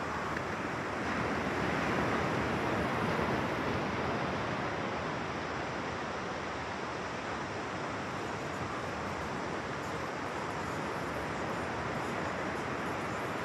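Ocean surf washes onto a sandy beach in the distance.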